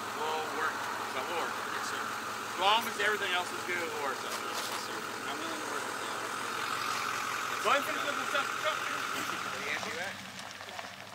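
A truck engine idles steadily.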